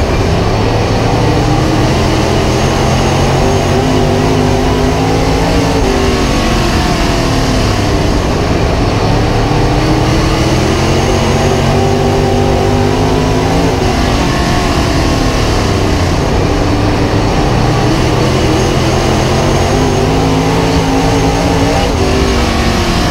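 A race car engine roars loudly up close, revving up and down through the corners.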